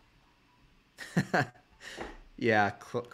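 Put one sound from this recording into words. A young man laughs briefly.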